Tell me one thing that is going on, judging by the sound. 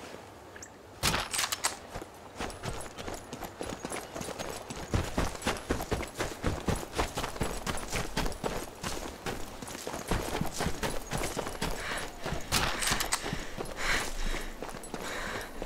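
Footsteps crunch quickly over gravel and stone.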